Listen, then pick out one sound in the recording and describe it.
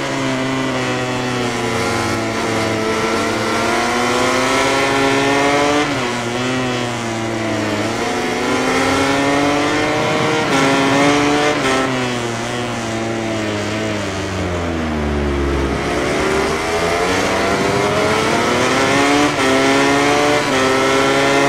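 A motorcycle engine screams loudly, its pitch rising through the gears and dropping when braking.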